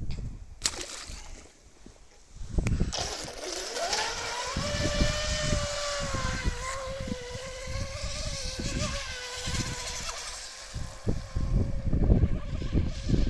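Water splashes and sprays behind a toy boat.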